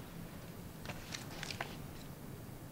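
A paper envelope rustles as it is handed over.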